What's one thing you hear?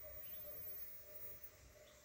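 A small lid clicks lightly against a container.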